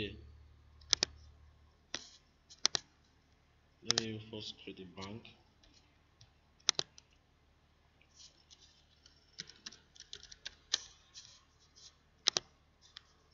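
A computer mouse clicks sharply several times.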